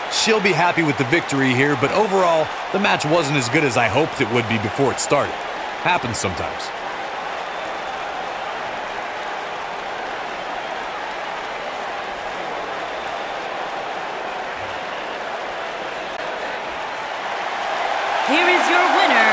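A large crowd roars steadily in a big arena, swelling into loud cheers at the end.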